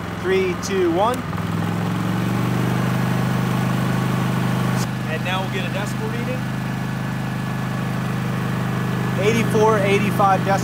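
A generator engine hums steadily close by.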